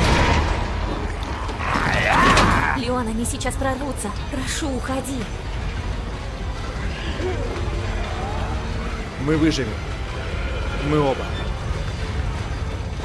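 A young woman speaks urgently.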